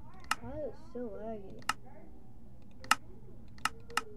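Menu buttons click sharply.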